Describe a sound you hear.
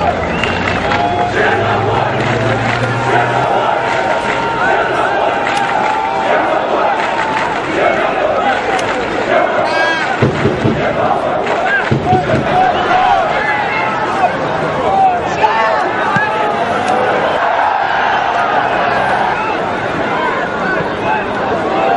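A large stadium crowd chants and cheers loudly outdoors.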